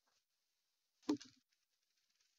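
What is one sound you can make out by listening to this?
A die rolls and clatters into a tray.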